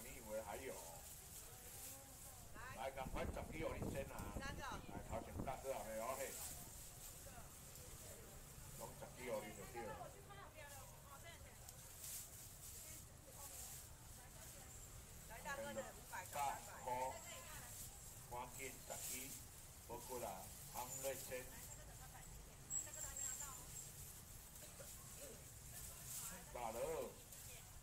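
Plastic bags rustle and crinkle.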